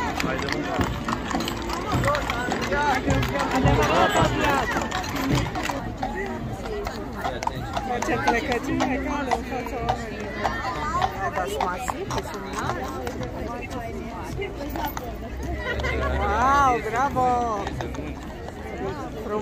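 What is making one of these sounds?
A crowd of onlookers chatters loudly outdoors.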